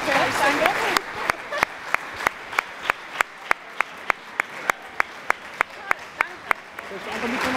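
A man claps his hands in a steady rhythm.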